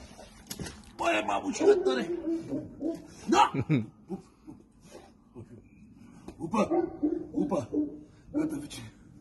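A man talks softly and affectionately close by.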